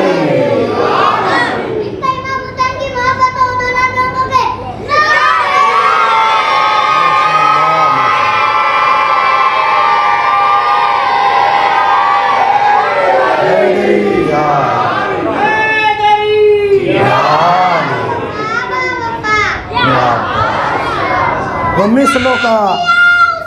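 A man speaks and chants melodiously into a microphone in a reverberant hall.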